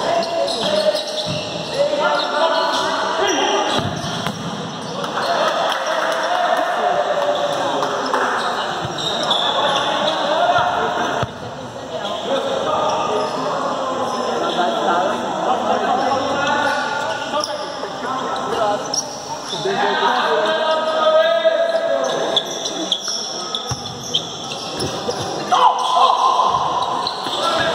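Sneakers squeak on the hard court.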